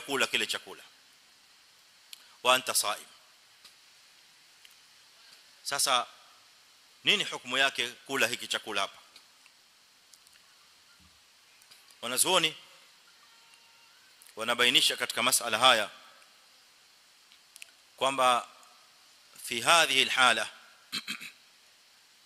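A man speaks calmly into a microphone in short phrases with pauses.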